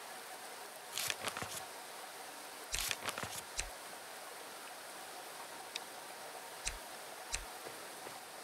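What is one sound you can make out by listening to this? Short menu clicks and chimes sound in quick bursts.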